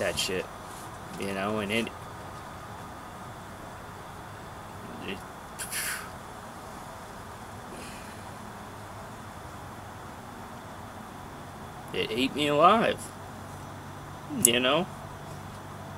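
A man speaks calmly and close by, outdoors.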